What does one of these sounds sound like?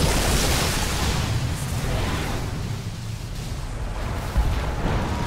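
Magic spells crackle and burst during a fast battle.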